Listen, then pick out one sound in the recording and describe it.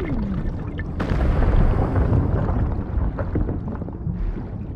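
Rocks and rubble tumble and crash.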